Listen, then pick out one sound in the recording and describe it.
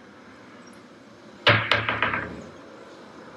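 A drawer slides open.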